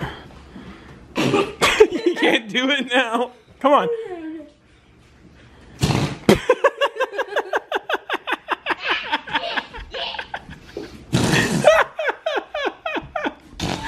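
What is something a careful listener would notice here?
A girl blows a trumpet, making short brassy squawks.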